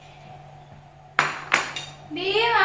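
A ceramic bowl is set down on a table with a clink.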